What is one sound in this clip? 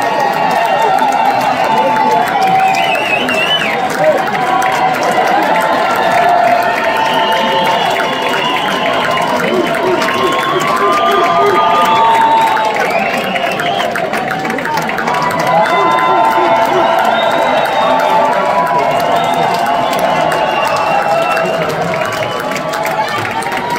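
A large crowd claps and applauds.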